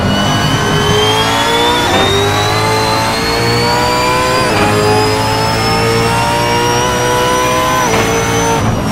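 Gear shifts clunk as the engine note jumps.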